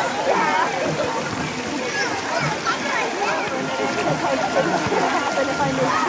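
Children and adults shout and chatter all around.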